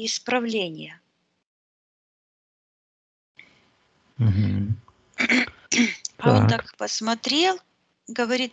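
A woman talks with animation over an online call.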